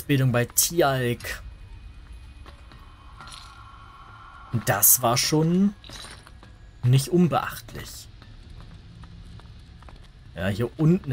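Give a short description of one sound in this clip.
Footsteps crunch softly on rough ground.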